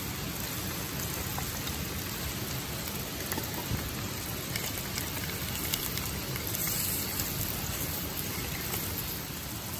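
Sausages sizzle in hot oil in a pan.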